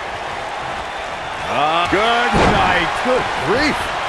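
A body slams down onto a wrestling mat with a heavy thud.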